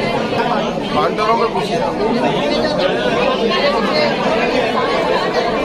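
A crowd of men and women chatters indoors.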